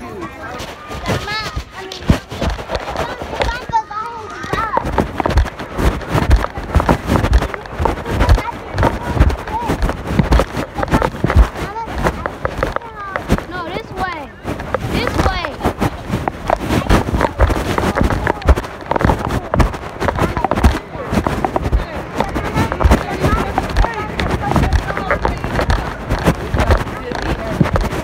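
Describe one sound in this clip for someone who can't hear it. A finger rubs and taps against the microphone with loud scraping thumps.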